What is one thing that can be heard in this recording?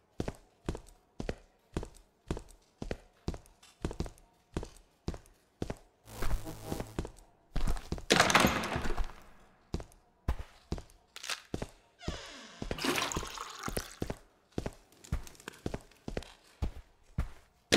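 Footsteps thud at a steady walking pace.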